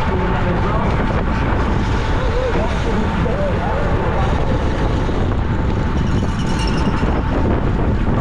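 Wind rushes loudly past, outdoors at speed.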